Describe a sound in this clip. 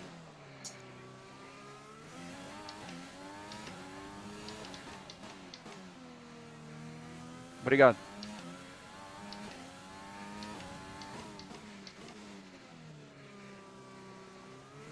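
A racing car engine whines high and revs up and down through the gears.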